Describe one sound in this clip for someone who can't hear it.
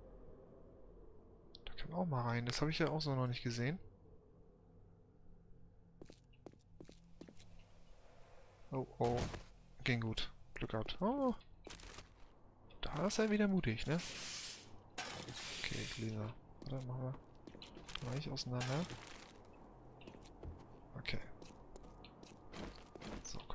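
Footsteps scuff across hard pavement.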